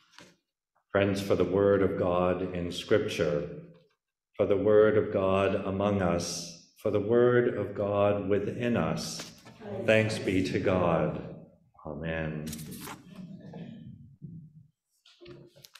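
A man reads aloud calmly over an online call.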